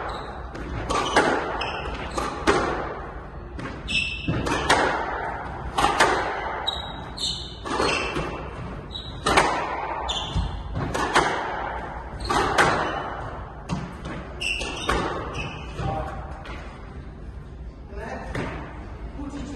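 Squash rackets strike a ball that smacks off the walls of an echoing court.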